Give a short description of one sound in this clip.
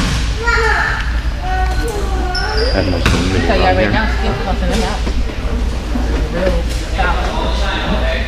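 A man talks to a group of boys.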